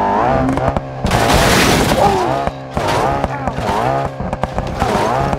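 A car crashes and tumbles with loud crunching impacts.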